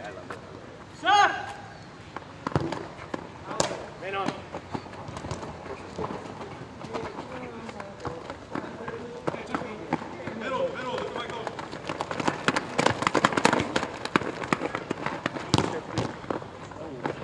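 Sneakers squeak and patter on a hard court.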